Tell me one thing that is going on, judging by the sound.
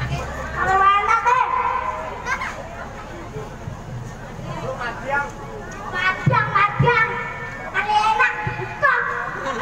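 A young child talks with animation to an audience.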